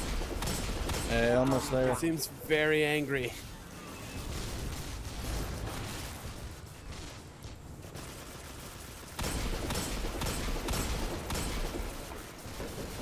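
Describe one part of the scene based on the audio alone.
Guns fire in quick bursts.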